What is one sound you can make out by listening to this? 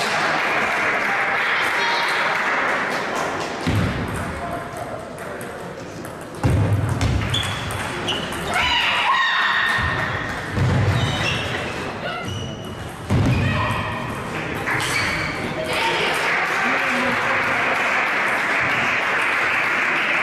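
A ball clicks back and forth on a table tennis table, in an echoing hall.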